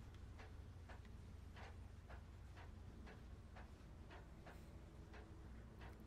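Footsteps clank on a metal ladder.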